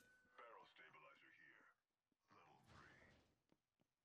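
A metal door slides open.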